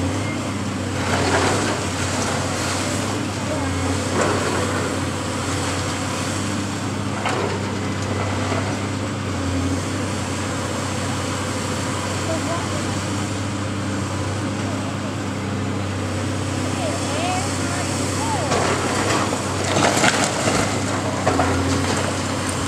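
Debris crashes and clatters as a building is torn down.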